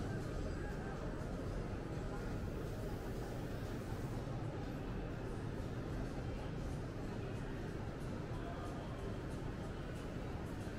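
A low murmur of distant people fills a large echoing hall.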